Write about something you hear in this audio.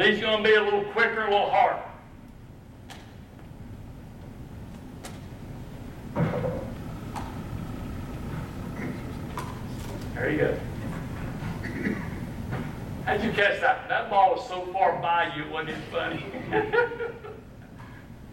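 A man speaks to an audience through a microphone in a large room, with animation.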